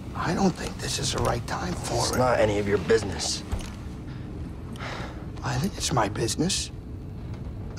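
A young man speaks calmly.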